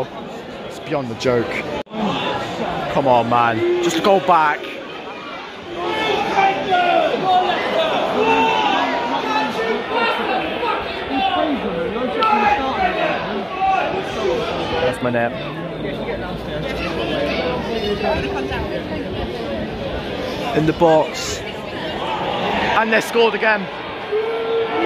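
A large crowd in a stadium chants and sings loudly.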